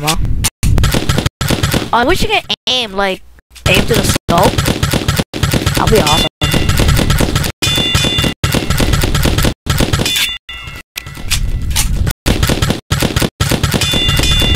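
Paintball gun shots pop rapidly.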